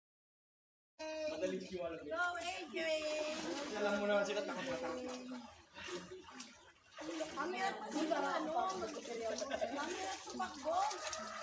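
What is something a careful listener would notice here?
Water splashes as people swim.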